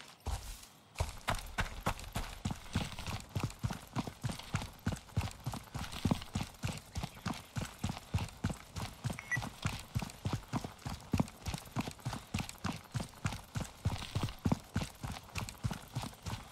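Footsteps crunch steadily on a gravel road.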